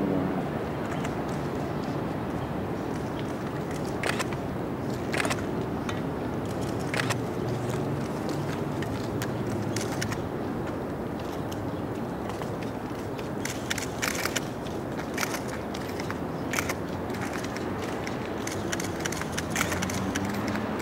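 Footsteps crunch slowly on a gravel path outdoors.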